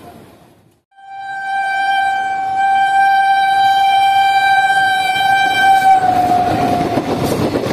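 A train horn blares loudly and steadily, dropping slightly in pitch at the end.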